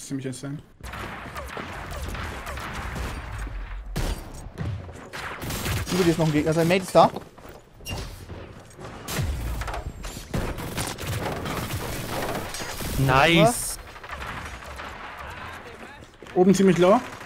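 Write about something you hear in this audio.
Rapid gunfire crackles and bangs.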